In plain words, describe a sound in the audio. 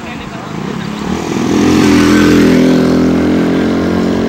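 A motorcycle engine approaches and grows louder.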